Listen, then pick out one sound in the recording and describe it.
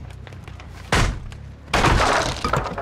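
A heavy thud sounds.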